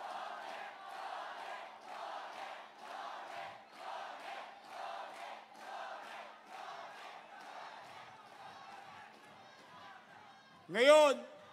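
A large crowd cheers and chants in rhythm.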